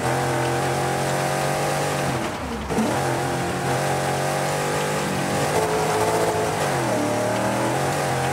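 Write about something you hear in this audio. A rally car engine roars at high revs, dipping briefly as it shifts gear.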